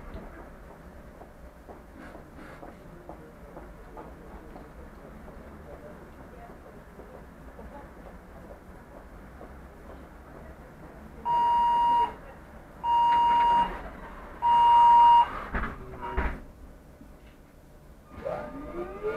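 A bus engine idles with a low, steady rumble.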